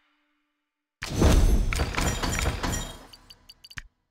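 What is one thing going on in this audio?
A treasure chest opens with a burst of sparkling sound.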